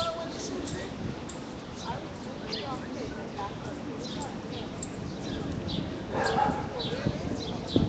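Men talk at a distance outdoors.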